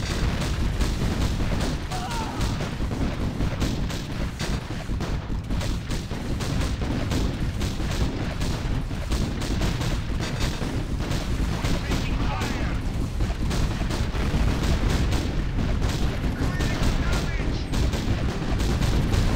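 Explosions boom in a rapid, rumbling barrage.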